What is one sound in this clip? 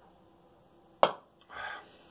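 A metal can knocks down.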